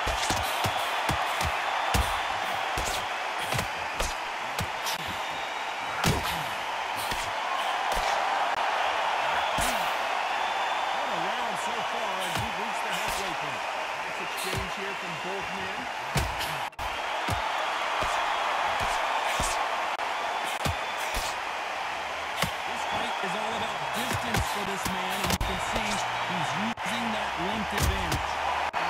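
Punches thud against bodies in quick bursts.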